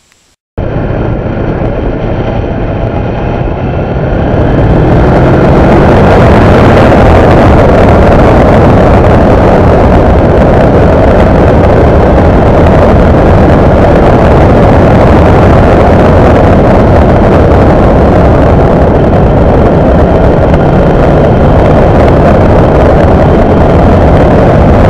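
Wind rushes loudly past while riding fast along a road.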